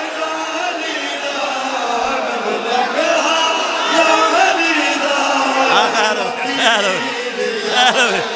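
A man sings a lead line into a microphone with feeling.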